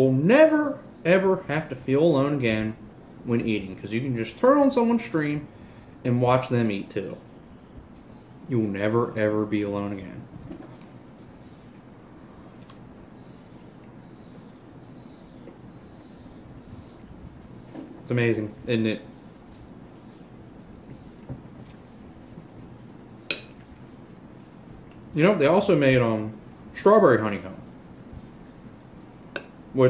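A spoon clinks against a bowl.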